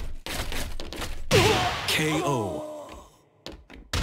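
Heavy punches and kicks land with sharp thuds.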